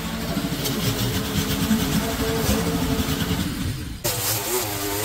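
A petrol lawn mower engine runs with a steady low rumble.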